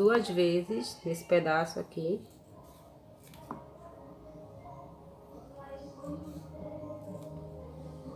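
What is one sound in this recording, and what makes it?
Scissors snip through stiff card.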